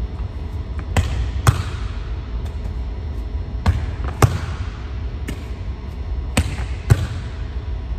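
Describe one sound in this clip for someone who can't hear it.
A volleyball thumps against a wall and off forearms, echoing in a large hall.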